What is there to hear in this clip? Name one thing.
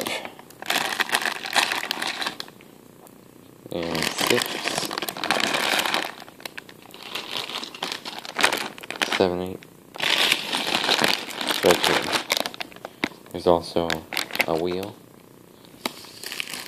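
Plastic bags crinkle and rustle as they are handled close by.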